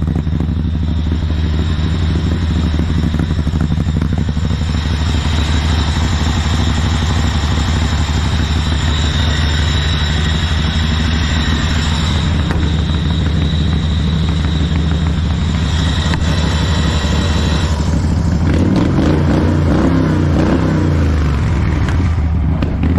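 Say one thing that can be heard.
A small lawn tractor engine idles with a steady, loud chugging.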